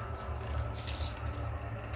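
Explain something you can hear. Tea pours from a kettle into a glass.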